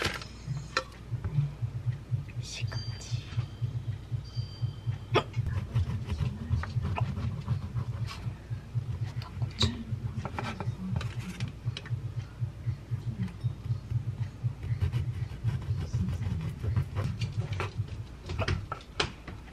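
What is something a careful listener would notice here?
A knife saws through crusty bread with a steady rasp.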